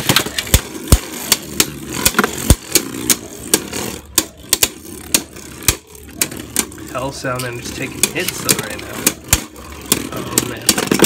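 Spinning tops clash and click sharply against each other.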